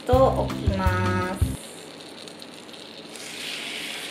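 Melted butter sizzles softly in a pan.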